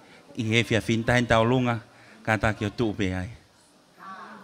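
A woman speaks into a microphone over loudspeakers in a large room.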